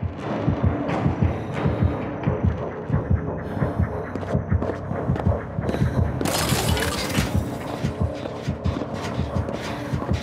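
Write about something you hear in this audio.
Footsteps thud quickly across wooden boards.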